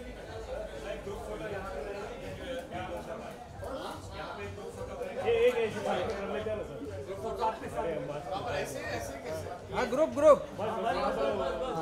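A man calls out loudly to others close by.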